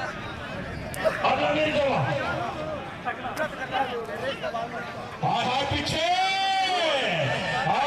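A large outdoor crowd murmurs and cheers.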